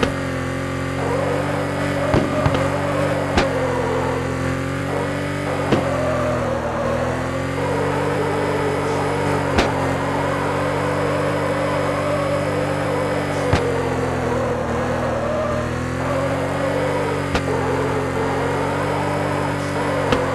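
A car engine revs high and steady, rising and falling in pitch.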